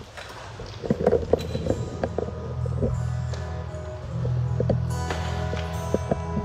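A man strums an acoustic guitar.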